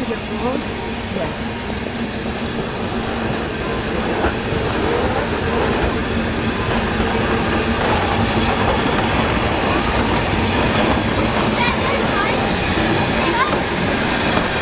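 Steel wheels squeal and clank on the rails.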